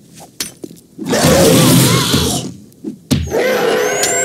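An axe strikes a body with heavy thuds.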